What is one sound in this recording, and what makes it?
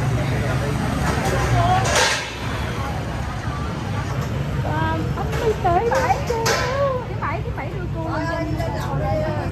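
Women speak and cry out emotionally close by.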